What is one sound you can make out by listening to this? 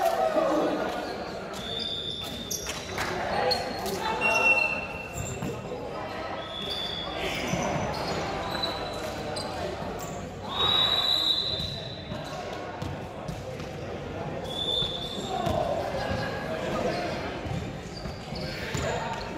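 Young men call out and shout to each other in a large echoing hall.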